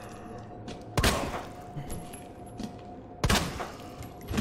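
Gunshots fire loudly with a short ringing echo.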